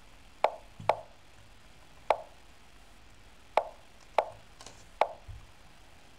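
Sharp clicks of chess moves sound at uneven intervals.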